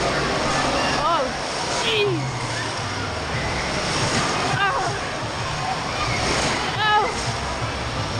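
Children shriek and squeal in the distance.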